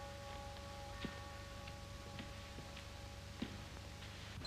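Ski poles tap on snow.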